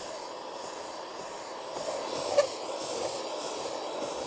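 A metal scraper scrapes old paint off wood.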